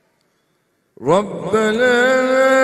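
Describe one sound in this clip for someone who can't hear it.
An older man chants a long, rising call into a microphone.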